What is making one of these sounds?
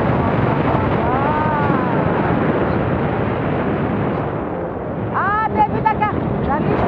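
A man shouts excitedly over the wind.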